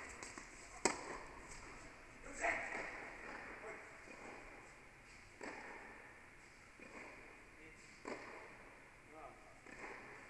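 Tennis shoes squeak on the court.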